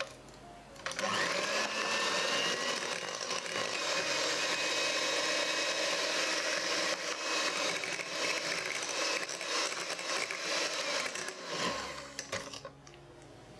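An electric hand mixer whirs steadily as it beats a thick batter.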